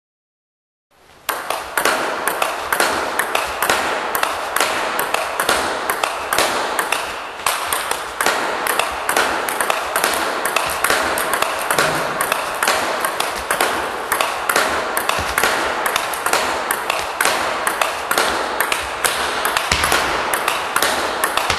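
A table tennis ball clicks rapidly back and forth between a paddle and a table.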